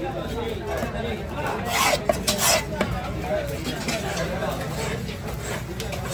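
A knife chops into a wooden block.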